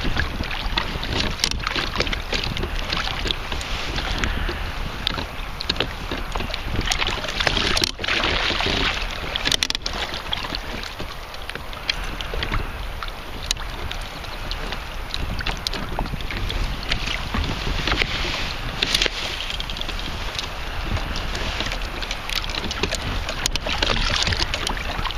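Wind blows steadily outdoors over open water.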